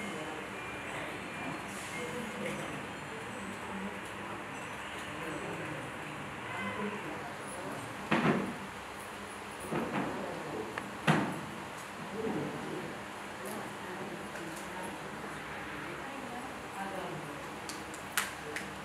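An elderly man chants a prayer steadily.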